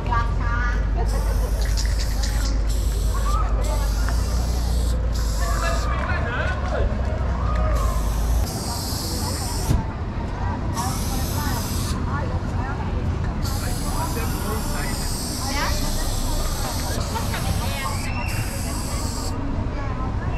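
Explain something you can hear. A spray can hisses in short and long bursts.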